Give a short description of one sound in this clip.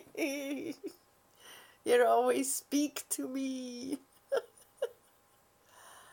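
An elderly woman laughs softly.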